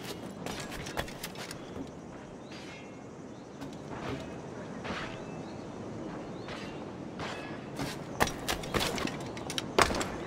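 Footsteps thud and clatter across a tiled roof.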